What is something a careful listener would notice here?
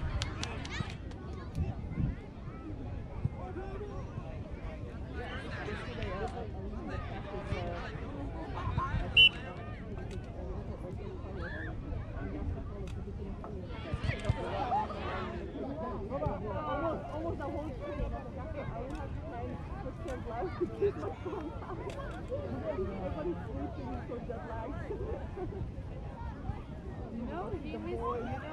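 Men and women talk and call out nearby in an open field outdoors.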